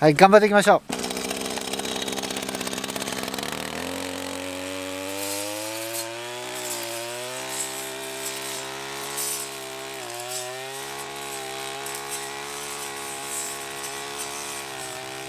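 A brush cutter engine revs up and runs steadily.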